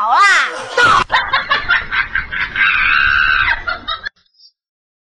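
A woman shrieks and squeals.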